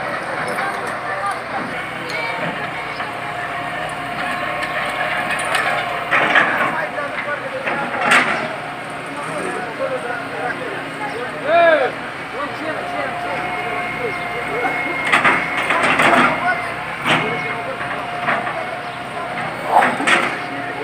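Rubble and bricks crash and clatter as an excavator bucket digs.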